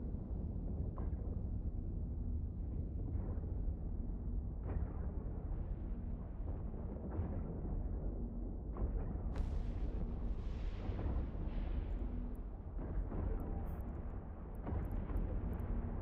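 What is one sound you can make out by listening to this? Weapon blasts boom now and then.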